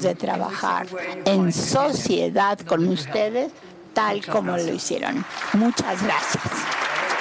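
An older woman speaks calmly into a microphone in a large hall.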